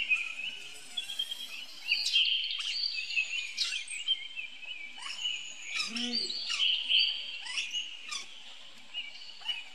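A baby monkey squeals and cries in high, shrill bursts close by.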